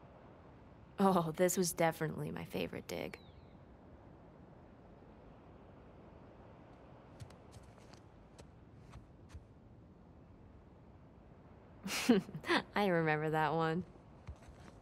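A young woman speaks fondly, close by.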